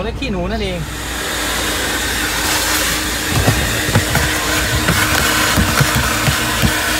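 A vacuum cleaner hums loudly and sucks air.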